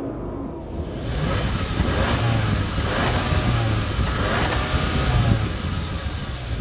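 A car exhaust rumbles loudly outdoors.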